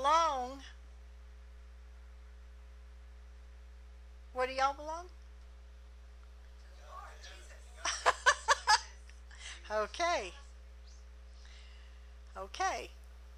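A middle-aged woman preaches with fervour into a microphone, in short bursts.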